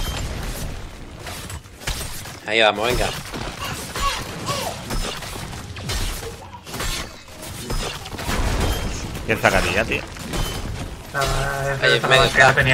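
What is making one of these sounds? Magic blasts and weapon hits crackle and thump in a busy fight.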